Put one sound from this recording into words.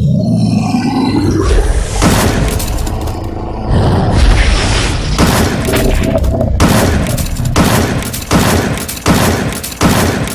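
A rocket thruster roars.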